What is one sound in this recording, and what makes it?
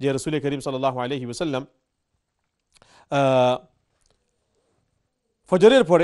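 A man speaks calmly into a clip-on microphone, in short phrases with pauses.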